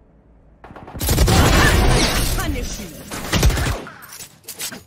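A loud energy blast whooshes and booms.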